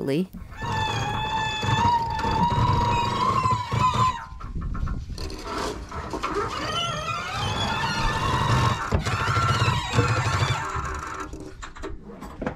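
A sailboat winch ratchets and whirs as it is cranked.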